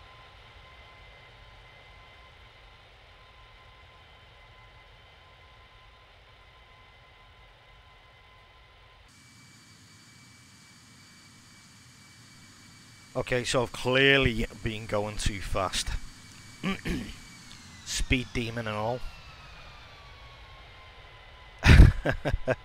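A jet airliner's engines hum steadily.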